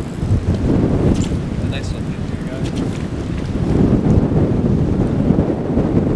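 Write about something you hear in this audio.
A river rushes and gurgles over rocks nearby.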